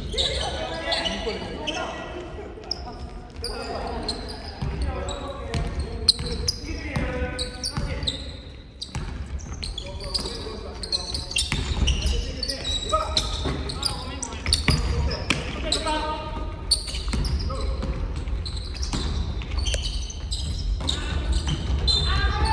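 Young men shout to each other across a large echoing gym.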